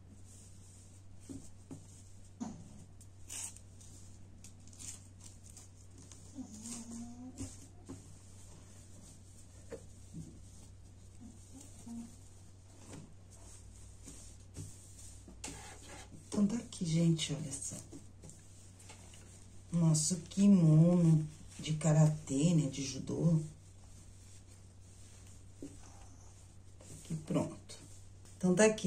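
Cloth rustles and crinkles as hands fold and smooth it.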